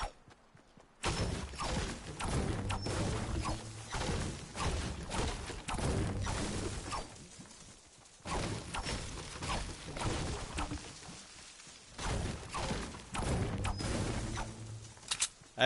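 A pickaxe strikes wood and stone again and again.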